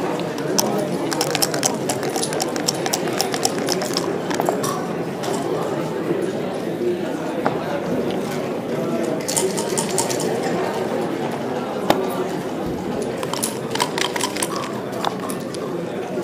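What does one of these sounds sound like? Dice rattle and tumble across a board.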